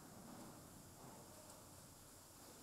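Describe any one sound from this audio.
Raw meat slides softly off a metal bin's floor.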